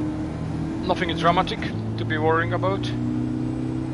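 A man speaks briefly close to a microphone.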